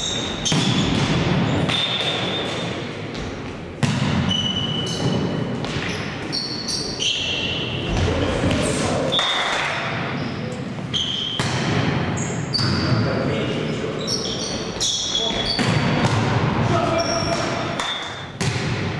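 A volleyball is struck hard, with sharp smacks echoing in a large hall.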